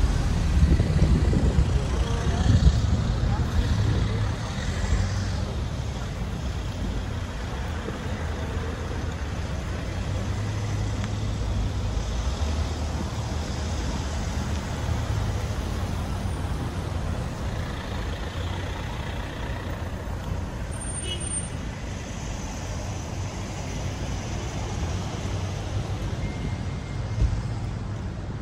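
Cars drive past on a street nearby.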